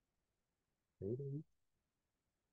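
A young man says a brief word over an online call.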